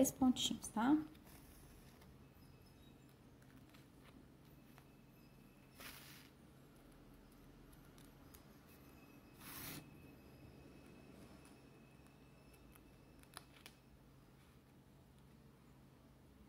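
Thread rasps softly as it is pulled through card.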